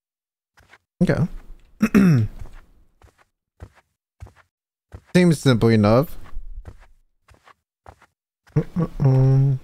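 A young man talks animatedly and close into a microphone.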